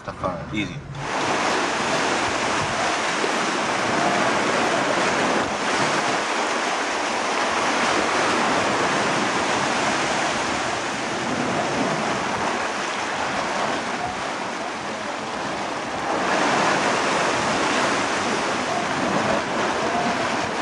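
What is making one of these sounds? Waves surge and crash against rocks, roaring steadily.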